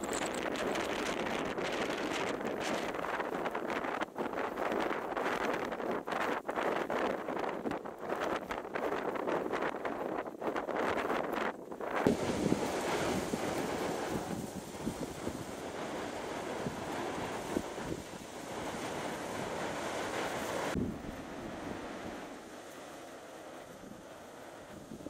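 Strong wind buffets outdoors with rough gusts.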